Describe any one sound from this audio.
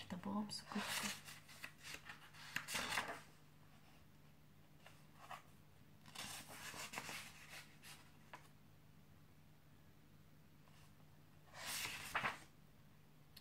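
Book pages rustle as they are turned.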